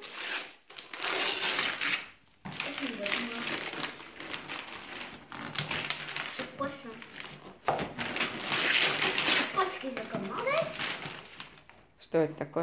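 Wrapping paper tears and crinkles as a present is ripped open.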